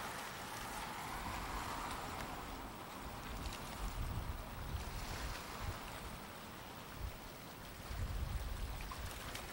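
Wind gusts and rumbles outdoors on open water.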